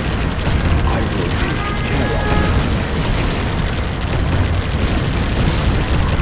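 Tank guns fire in rapid bursts.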